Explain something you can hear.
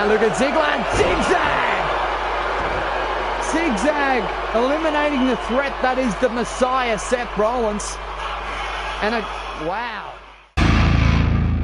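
A large crowd cheers and chants loudly in a big arena.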